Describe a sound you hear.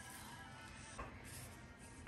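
Hands pat dough on a counter.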